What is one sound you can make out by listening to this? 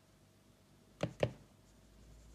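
A sieve taps against a bowl rim.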